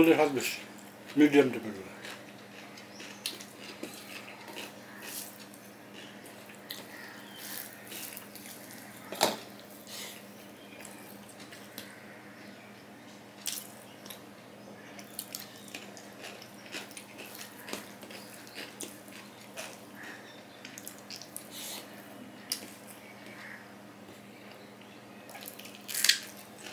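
A man chews food noisily up close, smacking his lips.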